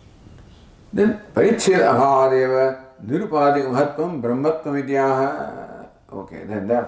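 An elderly man chants in a steady, sung voice through a microphone.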